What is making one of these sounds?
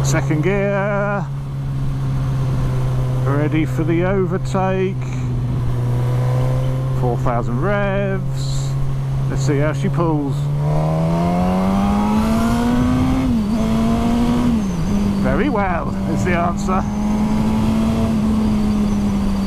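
A motorcycle engine drones steadily, then revs higher and shifts gears.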